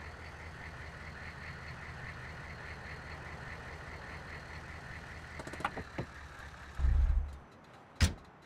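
A vehicle engine idles with a low rumble, then cuts off.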